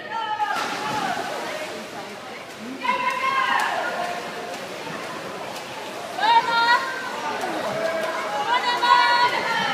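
Swimmers splash through the water of an indoor pool.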